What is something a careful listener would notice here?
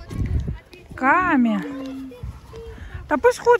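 A child calls out loudly nearby.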